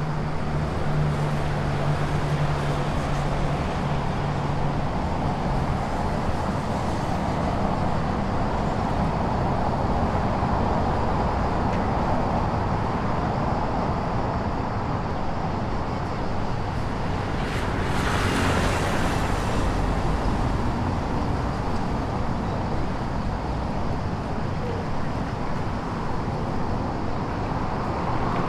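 Traffic hums steadily nearby outdoors.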